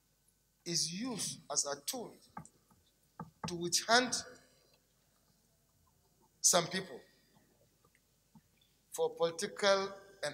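An elderly man speaks deliberately through a microphone, pausing between phrases.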